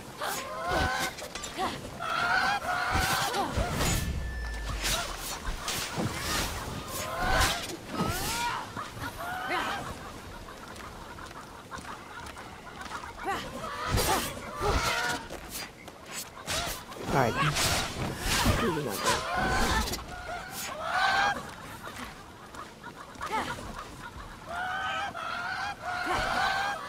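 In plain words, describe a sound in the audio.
Blades swish and strike in quick bursts.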